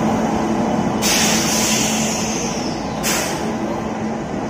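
A generator car hums loudly as it passes.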